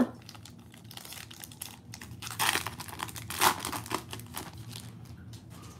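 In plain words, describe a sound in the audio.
A plastic wrapper crinkles and tears as it is opened.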